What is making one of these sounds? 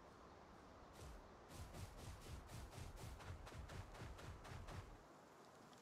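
Heavy footsteps thud quickly across grass.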